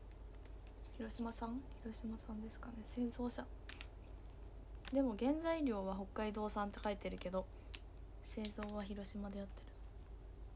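A young woman speaks softly and calmly close to a microphone.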